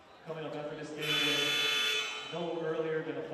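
A referee blows a sharp whistle in a large echoing gym.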